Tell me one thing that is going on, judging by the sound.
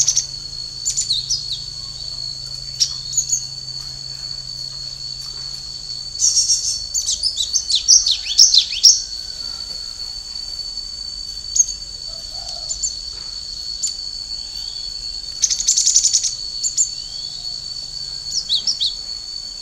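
A small caged bird chirps and trills nearby in bursts.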